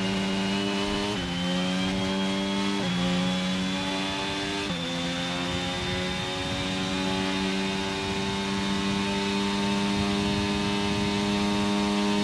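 A racing car engine screams at high revs, dropping sharply with each gear shift.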